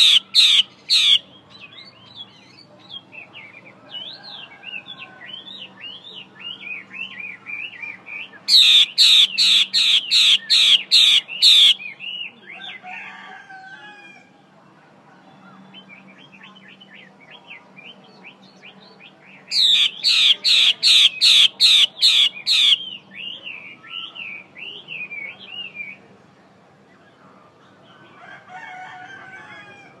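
A caged bird sings a fast, chattering song of quick warbling notes.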